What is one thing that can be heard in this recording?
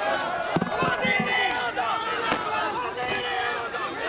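A man speaks into a microphone amid the crowd.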